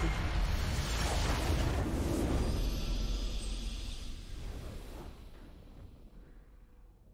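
A game's victory fanfare swells and fades.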